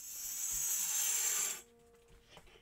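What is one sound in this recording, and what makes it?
A circular saw whines as it cuts wood.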